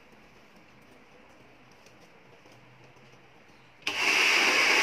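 A brush rustles through long hair.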